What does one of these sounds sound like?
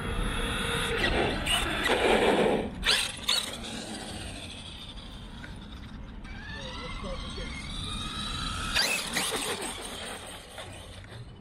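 A small electric motor whines as a toy car races past.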